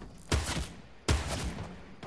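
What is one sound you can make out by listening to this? Gunshots crack in sharp, single bursts.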